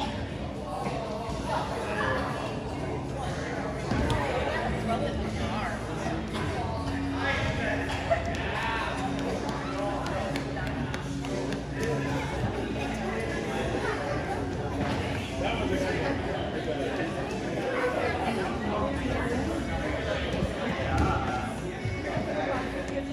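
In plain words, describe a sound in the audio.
Children chatter and call out in a large echoing hall.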